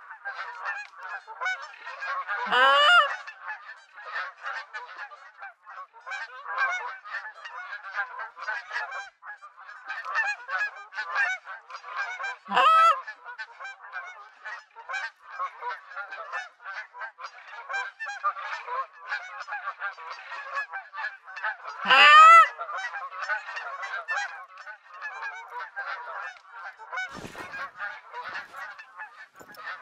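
A flock of geese honks and chatters.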